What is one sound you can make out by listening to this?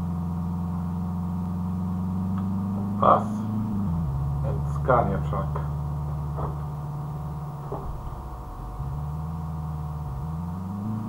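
A car engine hums steadily, its pitch dipping and rising.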